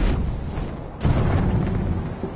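A figure lands heavily on the ground with a thud.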